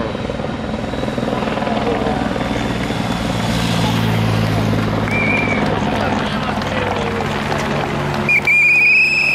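A motorcycle engine hums as it rides by.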